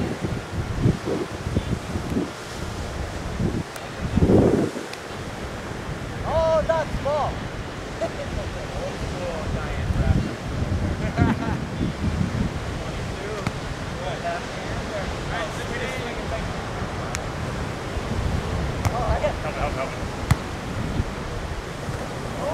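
Waves break steadily on the shore.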